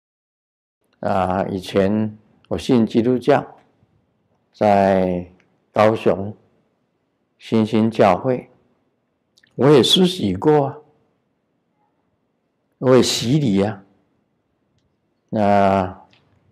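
An elderly man speaks calmly into a microphone in short phrases.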